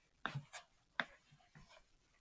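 Knees and hands shuffle and rub on a rug nearby.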